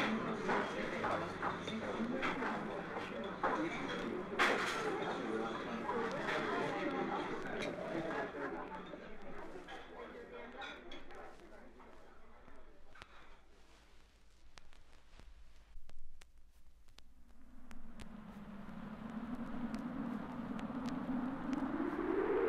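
Music plays from a vinyl record with soft crackles and pops.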